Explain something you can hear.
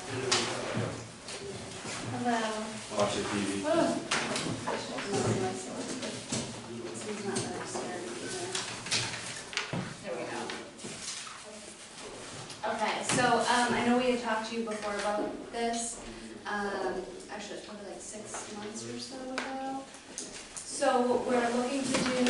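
A young woman speaks calmly in a room.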